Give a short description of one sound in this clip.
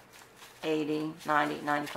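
Paper banknotes rustle as they are counted by hand.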